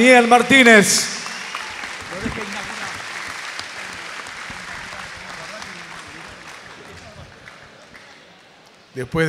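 A crowd applauds and then fades.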